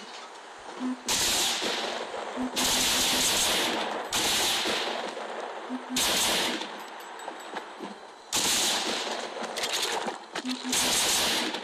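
Gunfire crackles in loud bursts.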